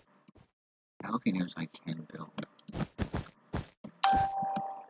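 Blocks are placed in quick succession with soft clicking thuds.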